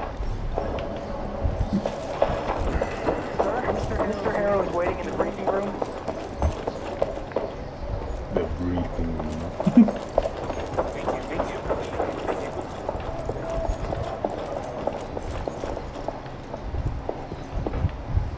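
A young man talks calmly into a microphone, close by.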